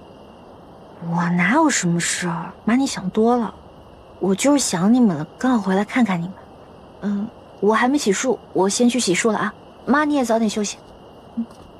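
A young woman answers calmly and lightly, close by.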